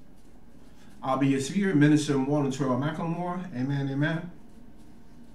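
A man speaks calmly and clearly, close to a microphone.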